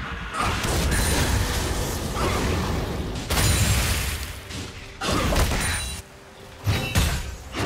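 Spells blast and crackle in a fast fantasy battle.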